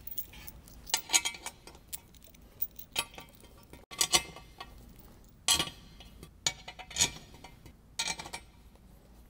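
Metal bolts click and tap as they are set into place.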